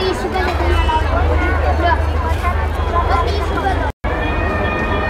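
A busy crowd of men and women chatter nearby outdoors.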